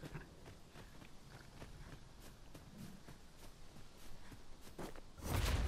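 Footsteps crunch and swish through tall grass.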